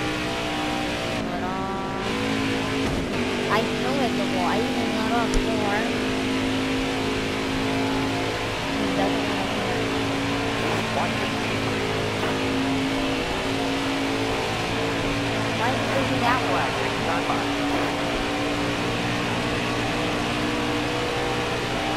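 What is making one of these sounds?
A V8 stock car engine roars at full throttle.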